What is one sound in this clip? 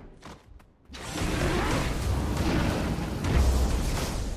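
Magic blasts and impacts crash loudly in a fight.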